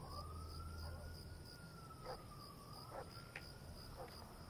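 Footsteps scuff softly on a concrete path outdoors.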